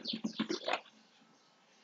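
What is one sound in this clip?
A man speaks briefly and quietly close to a microphone.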